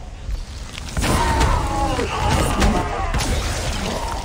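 A huge monster roars and growls.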